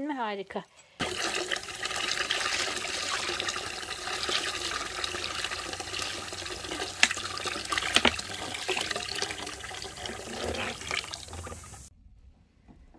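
Liquid pours steadily through a strainer into a pot.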